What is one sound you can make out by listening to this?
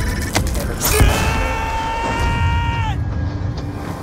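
A huge explosion booms and roars.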